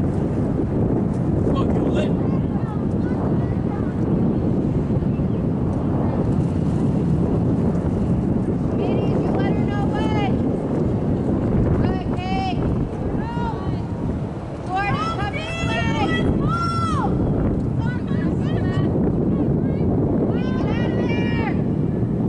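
Wind rumbles over the microphone outdoors.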